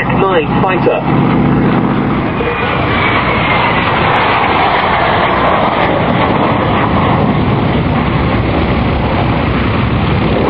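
A jet engine roars loudly as a plane flies past, its pitch slowly dropping.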